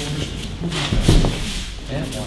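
A body thuds onto a mat.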